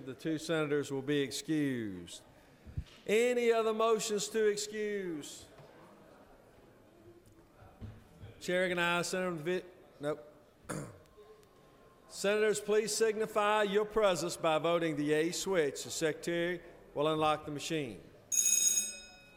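A man speaks into a microphone, heard over a loudspeaker in a large echoing hall, with pauses.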